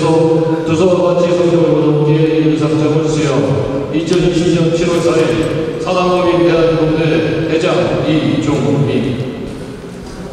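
An elderly man reads aloud clearly in a large echoing hall.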